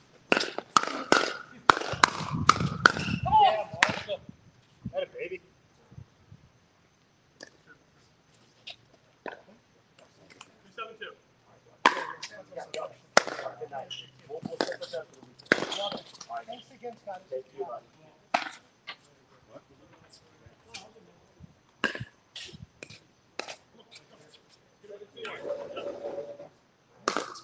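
Paddles hit a ball with sharp pops, back and forth outdoors.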